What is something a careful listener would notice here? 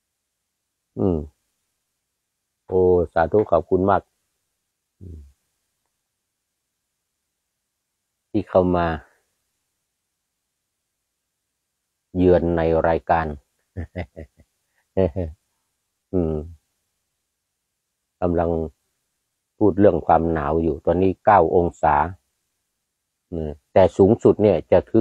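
An elderly man speaks calmly into a nearby microphone, in short phrases with pauses.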